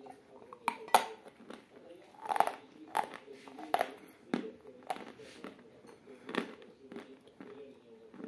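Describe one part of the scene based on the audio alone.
A young woman chews wetly and smacks her lips close by.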